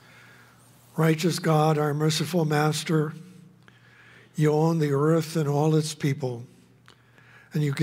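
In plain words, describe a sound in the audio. An elderly man chants in a steady sung voice through a microphone.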